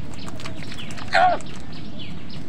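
A crow flaps its wings briefly.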